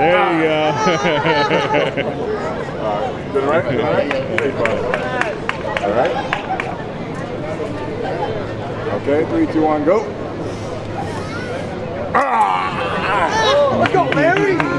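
A crowd chatters and cheers in the open air.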